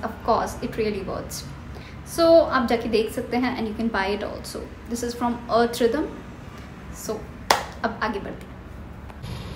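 A young woman talks to the microphone close up.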